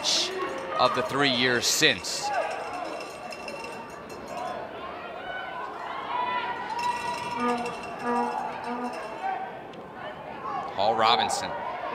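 A small crowd cheers and shouts in an open stadium.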